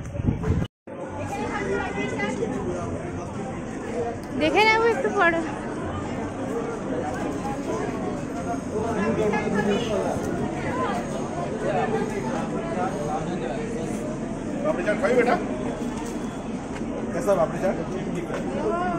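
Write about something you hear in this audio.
A crowd of people chatters all around on a busy street.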